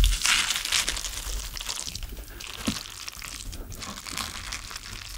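Chopsticks crackle and rustle through crispy food close to a microphone.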